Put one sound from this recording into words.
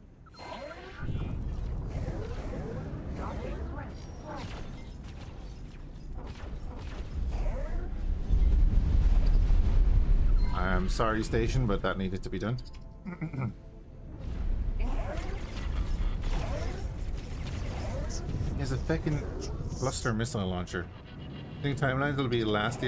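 A spaceship engine rumbles low and steady.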